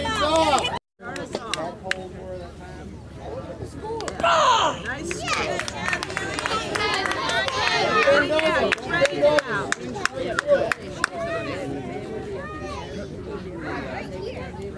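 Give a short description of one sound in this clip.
Young girls shout and cheer outdoors.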